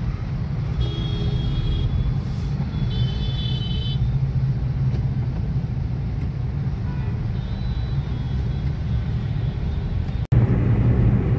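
A car engine idles in traffic.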